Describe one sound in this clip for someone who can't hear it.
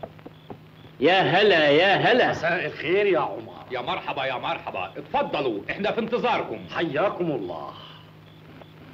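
Men greet each other loudly and with animation.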